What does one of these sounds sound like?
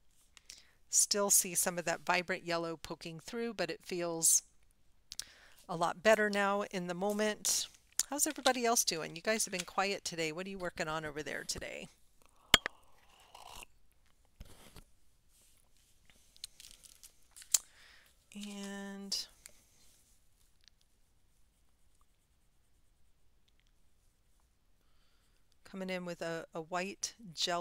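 A woman talks calmly and close to a microphone.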